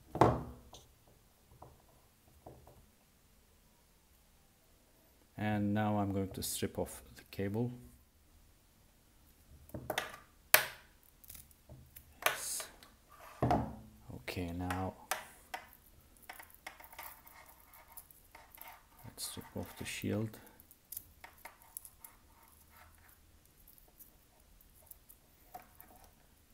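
Small plastic and metal parts click and rattle as they are handled.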